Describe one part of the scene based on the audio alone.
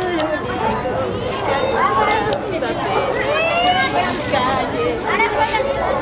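A crowd of young people chatters and calls out nearby outdoors.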